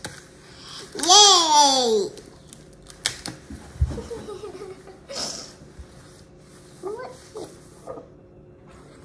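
A young girl laughs loudly.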